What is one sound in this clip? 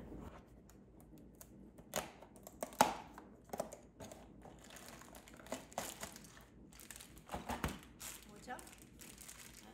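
Cardboard rustles and clicks as a box is opened.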